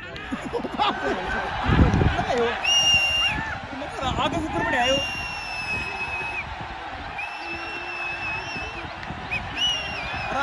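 Men cheer and shout in celebration.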